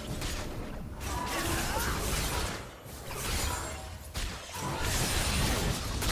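Weapons clash and strike in quick bursts.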